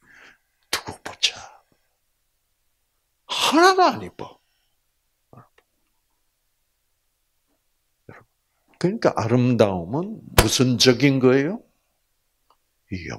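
An elderly man speaks with animation through a microphone, in bursts with pauses.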